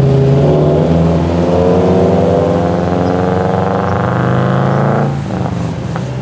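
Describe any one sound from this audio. A car engine revs loudly and roars away close by.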